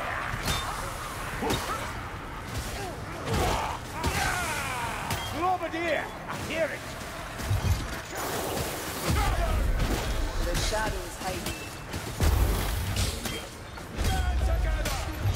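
Rat-like creatures screech and squeal.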